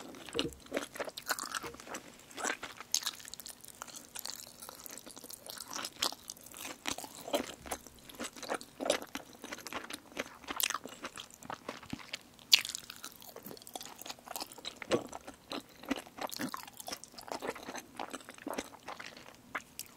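Chopsticks clink against a ceramic bowl.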